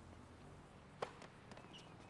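A tennis racket hits a ball with a sharp pop.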